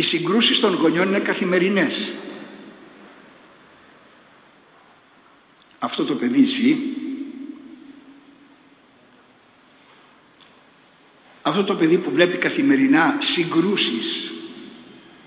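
An elderly man speaks calmly into a microphone in an echoing hall, with pauses.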